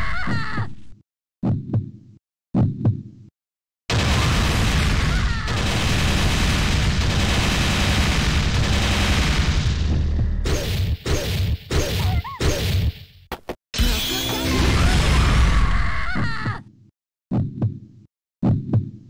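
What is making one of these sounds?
Explosive energy blasts boom and crackle in short bursts.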